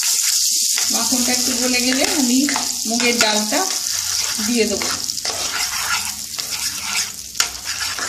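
A wooden spatula scrapes against a pan.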